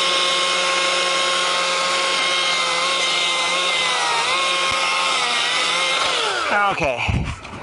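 A chainsaw engine runs steadily, then dies out.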